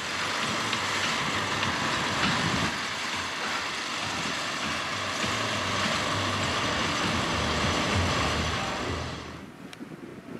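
A motorized cart rumbles slowly across open ground.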